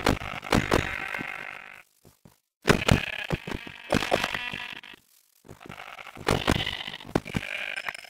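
A pig grunts and squeals as it is hit.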